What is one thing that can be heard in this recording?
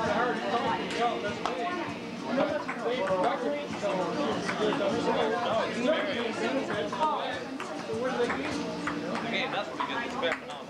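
A crowd of adults chatters nearby.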